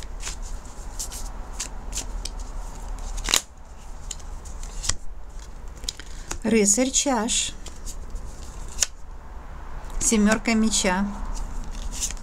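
Playing cards shuffle and flick in a person's hands.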